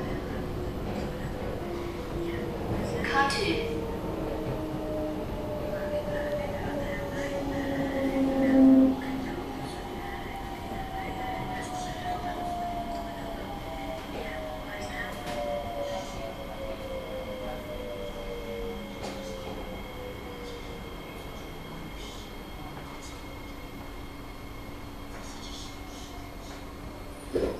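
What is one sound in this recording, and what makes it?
A train rumbles along the track, its motor whining down in pitch as it slows.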